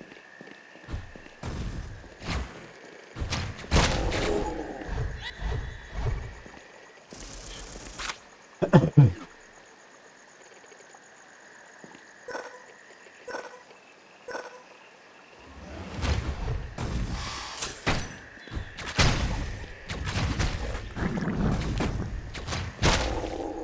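Video game sword slashes and hits ring out in quick bursts.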